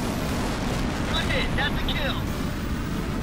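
An explosion bursts in the distance.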